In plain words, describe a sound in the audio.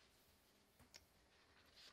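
Paper rustles as a woman handles a sheet.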